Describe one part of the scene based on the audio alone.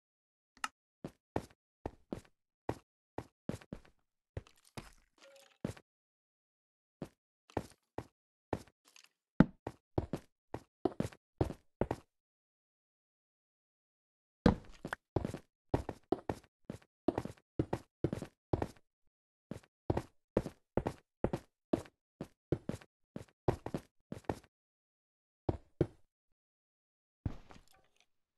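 A pickaxe chips at stone blocks in quick, repeated knocks.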